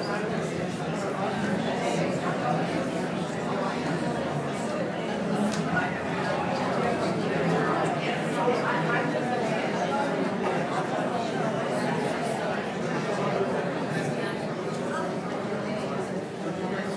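Men and women murmur quietly in a large echoing hall.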